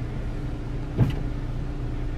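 A hand taps on a car window once.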